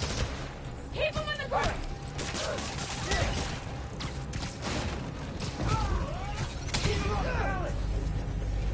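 A man shouts and grunts during a fight.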